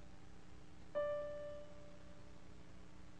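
A keyboard plays a single note that rings and fades.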